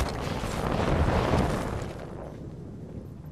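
Wind rushes loudly past, then fades.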